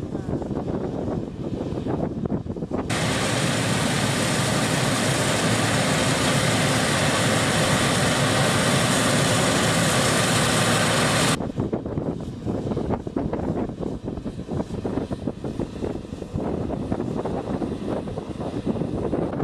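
A cotton harvester's engine rumbles and whirs steadily.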